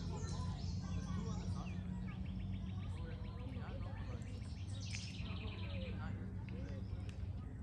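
Children and adults chatter faintly in the distance outdoors.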